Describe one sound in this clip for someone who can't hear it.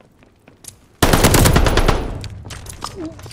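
A submachine gun fires a loud rapid burst.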